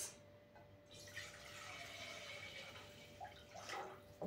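Water pours from a jug into a pot.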